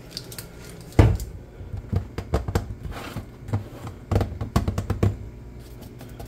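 A plastic bottle knocks and rattles on a counter.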